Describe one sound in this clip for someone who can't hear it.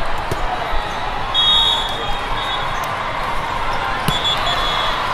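A volleyball is struck with a hard smack.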